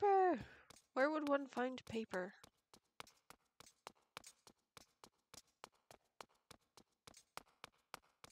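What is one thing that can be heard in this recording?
Quick footsteps patter on a wooden floor.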